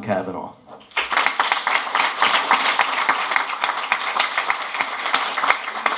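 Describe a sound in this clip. An audience claps and applauds in a small room.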